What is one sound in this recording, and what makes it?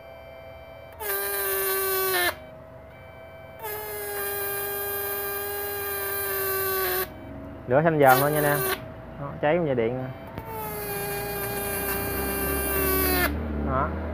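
An electric spark buzzes and crackles loudly in bursts.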